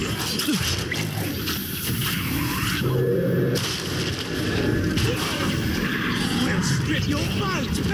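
Creatures snarl and shriek.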